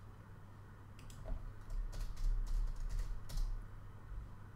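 Keys clatter on a computer keyboard in short bursts.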